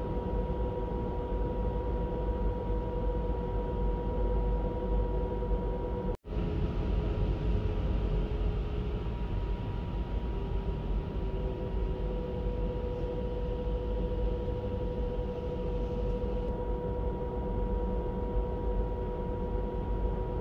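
A jet airliner's engines hum and rumble steadily.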